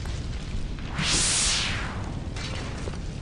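A burst of magic whooshes.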